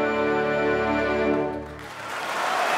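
An orchestra and choir hold a loud final chord in a large hall.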